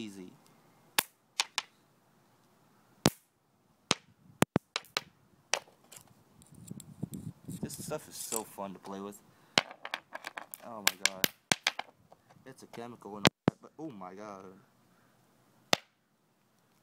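A stone knocks and scrapes against concrete.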